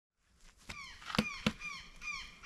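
A wooden stake thuds against the ground.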